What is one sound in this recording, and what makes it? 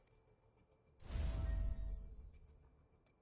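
A game menu chimes with a bright whoosh as a panel pops open.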